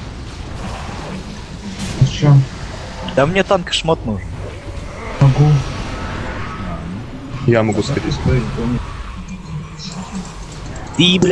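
Magic spells crackle and whoosh during a noisy battle.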